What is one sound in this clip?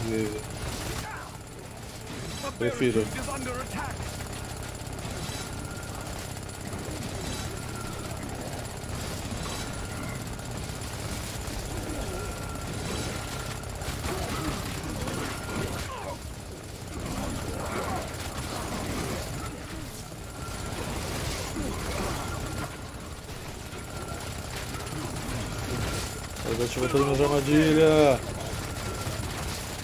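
Game weapons fire and blast repeatedly.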